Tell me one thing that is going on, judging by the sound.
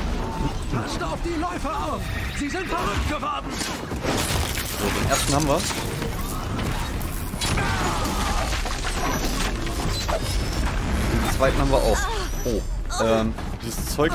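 Blows and impacts thud and crunch in a fight.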